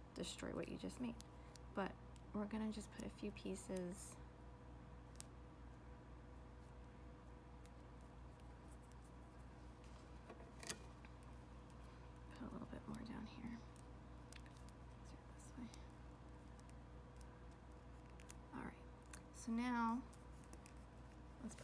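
Small plastic and metal parts click and rustle softly close by.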